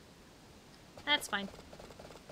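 A horse neighs briefly.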